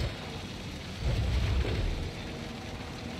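A load of bricks thuds down onto the ground.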